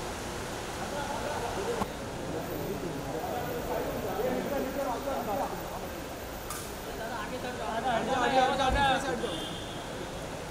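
A crowd of men shouts and calls out nearby.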